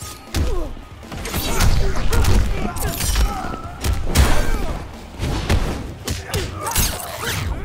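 Heavy punches and kicks land with loud, sharp thuds.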